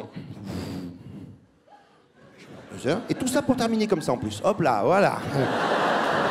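A man talks animatedly into a microphone on stage.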